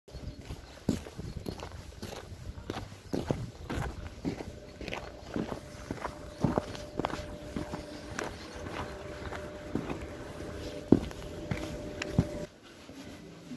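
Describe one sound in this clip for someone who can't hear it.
Footsteps crunch on snow and ice outdoors.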